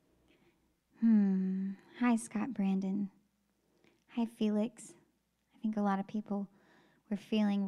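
A young woman sings softly into a microphone.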